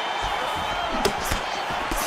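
A punch lands with a sharp thud.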